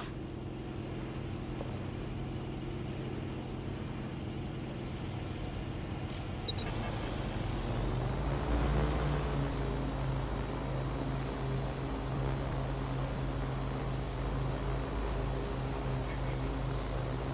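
A drone's propellers hum steadily and grow louder as it lifts off.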